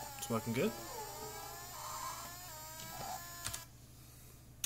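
A racing car engine whines and shifts pitch through game speakers.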